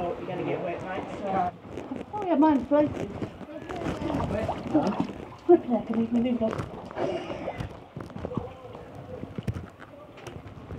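Water sloshes and splashes as a person wades through it.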